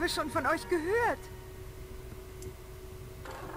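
A small top spins and whirs on a wooden board.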